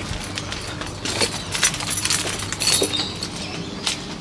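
Keys jingle on a key ring.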